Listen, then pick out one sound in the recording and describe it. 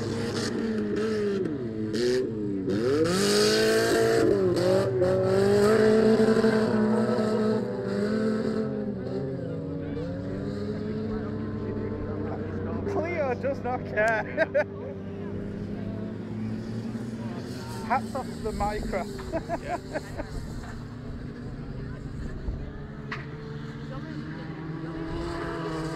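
Several car engines roar and rev loudly outdoors.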